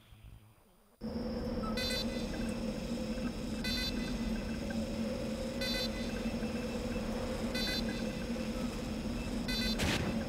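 A sentry gun hums and beeps steadily.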